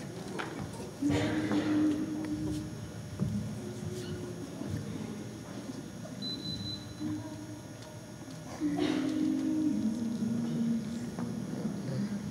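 A group of women and men sing together in a large echoing hall.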